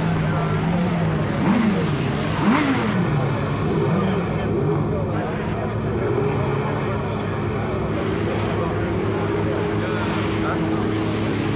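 Motorbike engines roar and rev up and down throughout.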